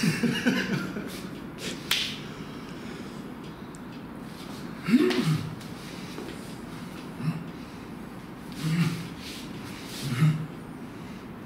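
An older man speaks and laughs.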